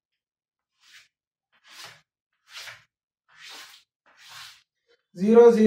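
Chalk scratches and taps on a blackboard in short strokes.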